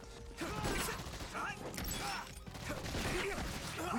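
An energy weapon fires with a buzzing hiss.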